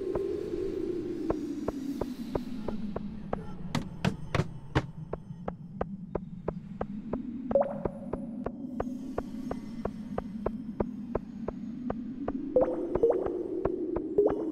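Quick footsteps tap steadily on hard ground.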